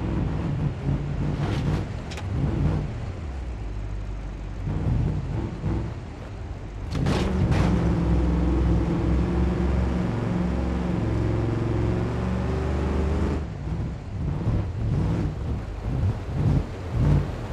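A truck engine roars and revs hard throughout.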